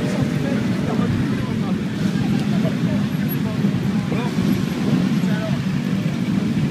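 Many motorcycle engines rumble and idle steadily outdoors.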